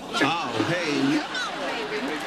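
A man cries out in distress close by.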